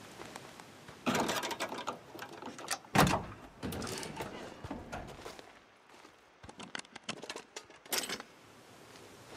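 Metal clanks and rattles.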